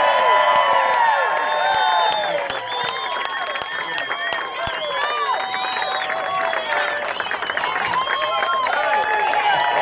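A crowd cheers and whistles loudly outdoors.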